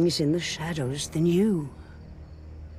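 An elderly woman speaks slowly in a low, raspy voice.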